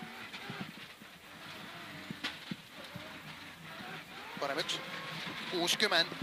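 A rally car engine roars and revs up and down from inside the car.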